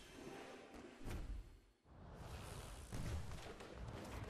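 A magical whoosh and shimmering burst sound as a card pack bursts open.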